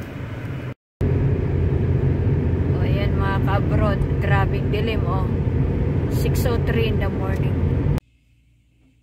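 A car engine and tyres rumble steadily on a highway.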